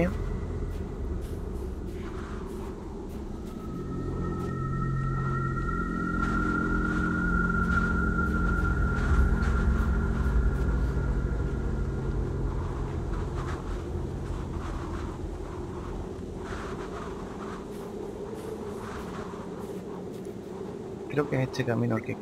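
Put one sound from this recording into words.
A man talks into a microphone close by.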